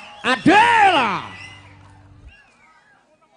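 A crowd cheers and whistles loudly outdoors.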